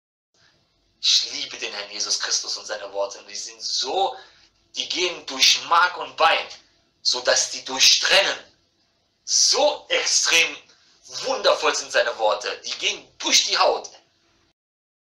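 A man speaks with animation into a microphone, heard through a phone's small loudspeaker.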